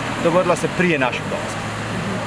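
A man speaks close into microphones.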